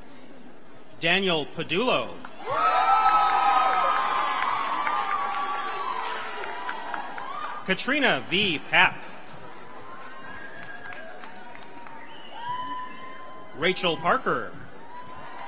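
Audience members cheer and whoop loudly in short bursts.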